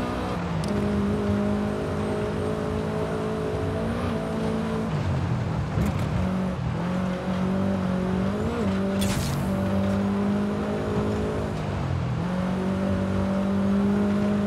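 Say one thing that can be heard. A car engine drones steadily, dropping briefly as gears change and then rising again.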